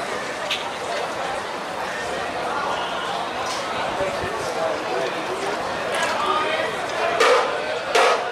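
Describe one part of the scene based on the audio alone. A marching band plays brass instruments outdoors.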